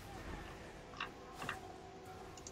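Menu buttons click softly.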